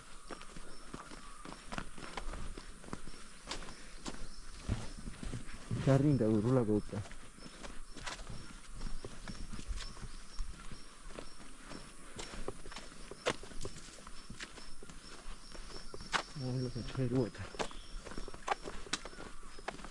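Footsteps crunch steadily on a gravel path outdoors.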